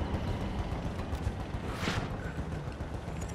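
A helicopter's rotor thuds as it flies overhead.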